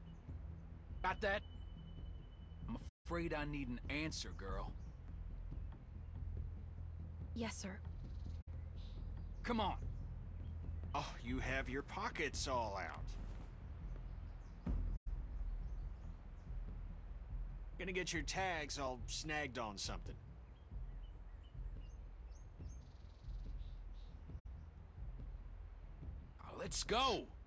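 A man talks close to a microphone.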